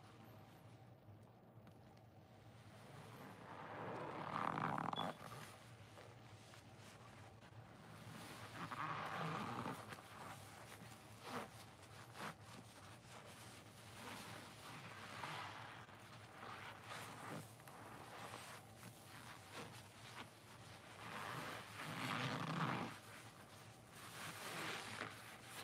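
A soapy sponge squelches as it is squeezed close up.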